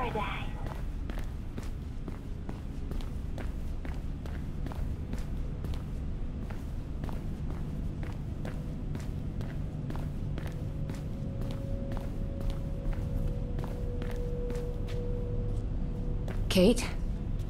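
Footsteps tap steadily on a hard floor and stairs.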